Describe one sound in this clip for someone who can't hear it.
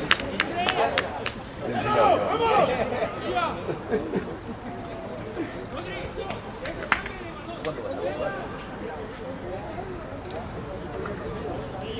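Men shout and call out to each other across an open field outdoors.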